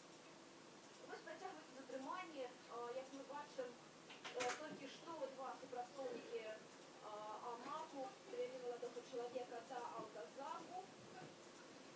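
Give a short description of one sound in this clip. A small dog whines and yelps excitedly.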